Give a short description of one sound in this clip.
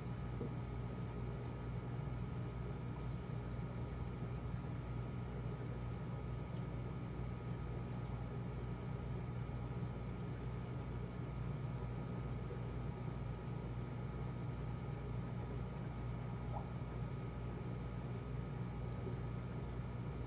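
Water bubbles and trickles in a fish tank.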